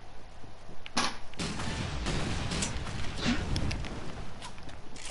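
Guns fire in loud rapid bursts with booming blasts.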